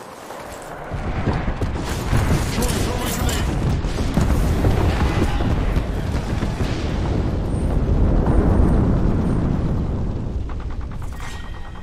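Heavy explosions boom and rumble in a steady barrage.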